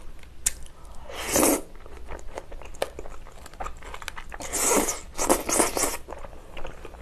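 A young woman slurps noodles loudly up close.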